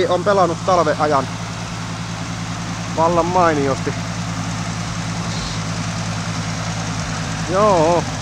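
A vehicle engine rumbles steadily nearby.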